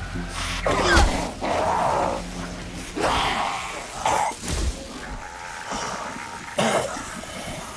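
A blade strikes flesh with heavy thuds.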